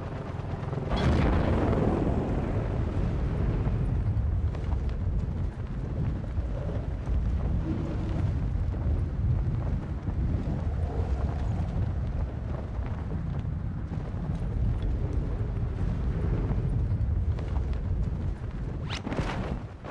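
Wind roars past a skydiver in freefall.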